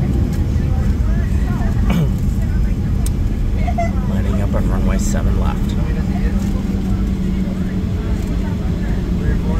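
A jet engine rumbles and hums steadily as the plane taxis.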